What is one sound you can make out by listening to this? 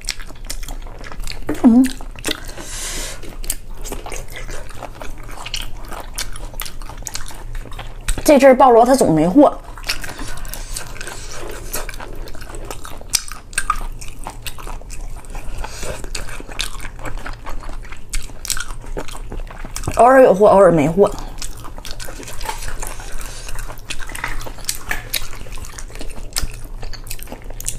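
Shells crack and squish wetly as fingers pull them apart close to a microphone.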